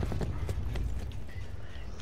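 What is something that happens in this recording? A rifle fires a burst of shots.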